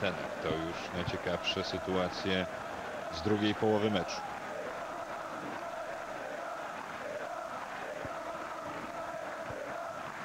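A stadium crowd murmurs and roars steadily in a large open space.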